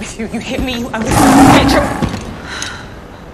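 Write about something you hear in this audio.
A large creature growls loudly close by.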